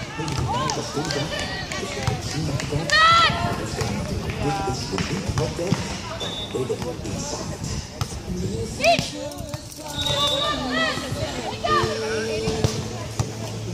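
Young women call out to each other outdoors.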